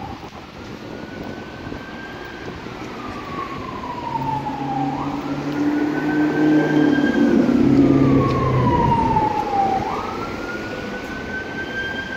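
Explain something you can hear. Car traffic hums steadily along the road.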